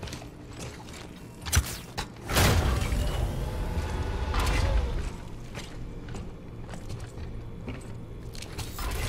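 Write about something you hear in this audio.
Heavy boots thud on a metal floor.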